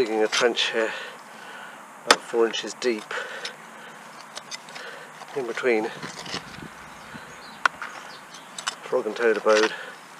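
A trowel digs and scrapes into soft soil.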